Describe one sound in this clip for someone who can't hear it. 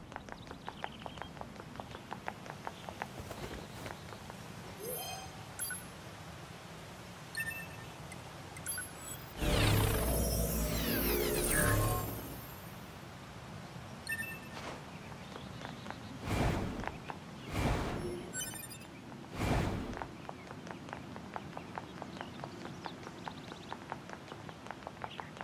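Quick light footsteps patter on the ground.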